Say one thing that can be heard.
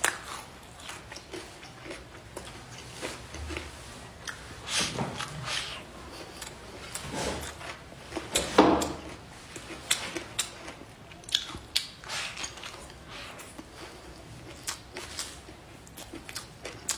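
A young woman chews and slurps food loudly close by.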